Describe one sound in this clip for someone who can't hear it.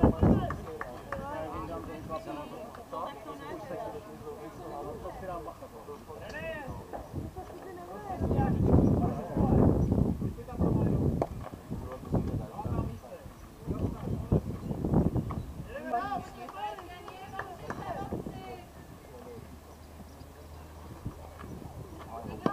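Young women call out to each other from a distance outdoors.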